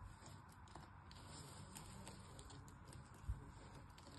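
Brittle pieces snap between fingers.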